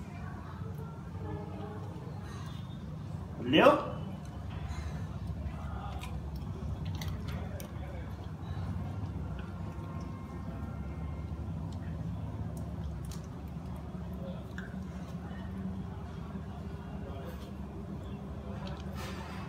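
Dogs sniff and lick at food.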